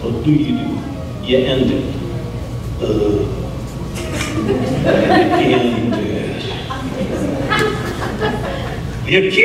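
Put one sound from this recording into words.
A middle-aged man speaks animatedly through a microphone.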